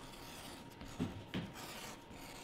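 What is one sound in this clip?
A needle and thread pull through leather with soft scratches.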